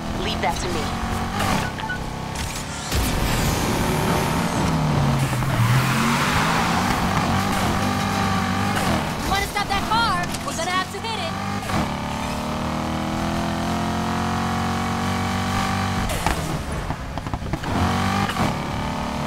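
A sports car engine roars loudly, revving up and down as it races.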